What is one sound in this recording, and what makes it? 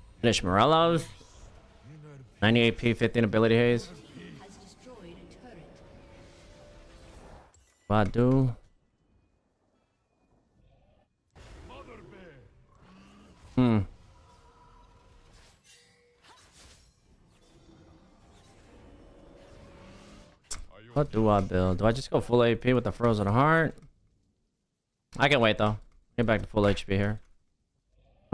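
A man talks with animation into a close microphone, in short bursts with pauses.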